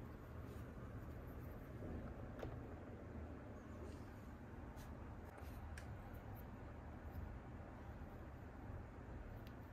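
Small plastic toys click and tap softly as they are handled.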